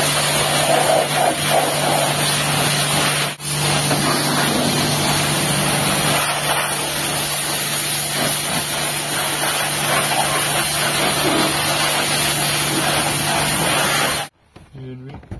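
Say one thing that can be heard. A pressure washer sprays water in a loud, steady hiss, with a motor humming underneath.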